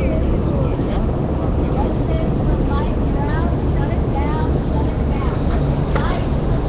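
A dense crowd of people chatters and shouts close by outdoors.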